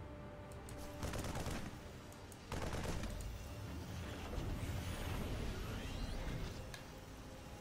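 Game explosions and weapon blasts boom during a battle.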